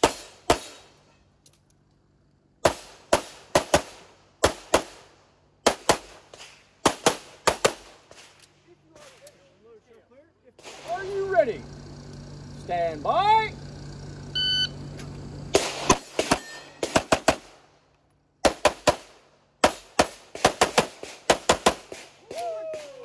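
Pistol shots crack in quick strings outdoors.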